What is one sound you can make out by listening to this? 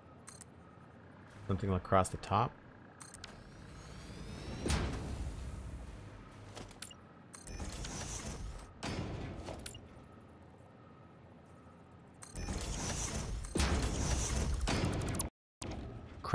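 Electronic game sounds whir and click as building pieces snap into place.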